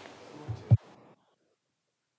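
A middle-aged woman speaks briefly into a microphone.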